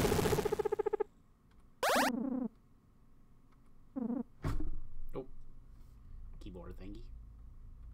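Short electronic video game chimes and blips play in bursts.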